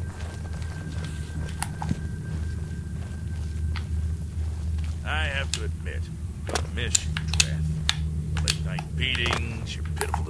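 Footsteps echo on a stone floor in a large, hollow space.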